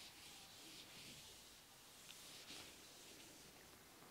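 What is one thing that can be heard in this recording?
A duster rubs across a whiteboard.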